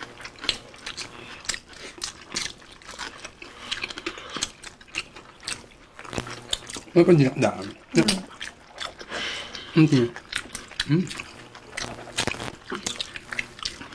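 People chew and smack food loudly and close up.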